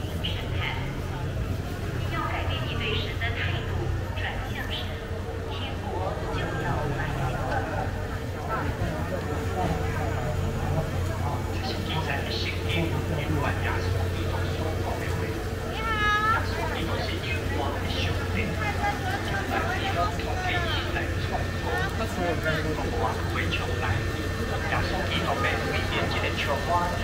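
A crowd of people chatters in a busy outdoor street market.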